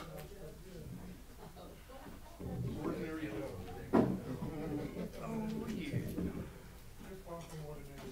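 A microphone stand rattles and knocks as a man handles it.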